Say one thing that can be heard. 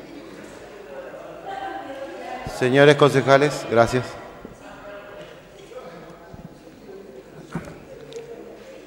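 Several people murmur quietly in the background.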